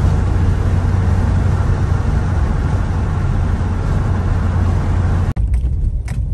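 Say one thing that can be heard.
A car drives along with a steady rumble of road and wind noise.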